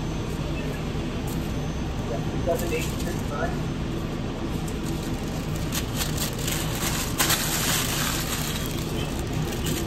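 Paper crinkles and rustles as it is folded around food.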